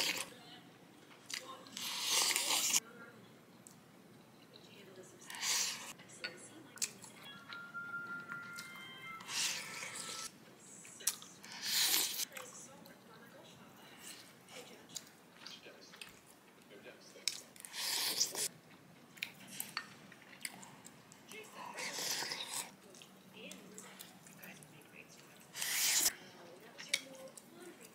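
A person chews food close up.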